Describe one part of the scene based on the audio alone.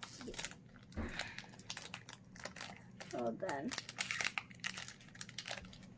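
A child's hands crinkle a foil booster pack.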